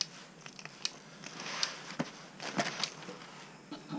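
Liquid squirts and hisses in short bursts from a squeeze bottle.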